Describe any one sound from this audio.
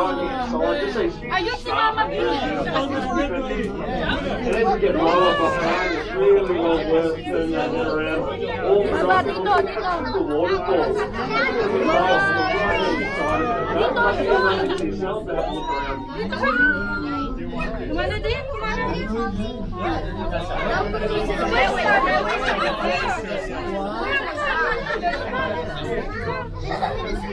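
A crowd of adult passengers chatter nearby, several voices overlapping.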